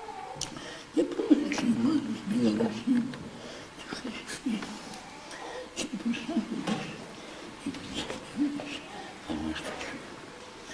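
An elderly man chants in a low voice, close by.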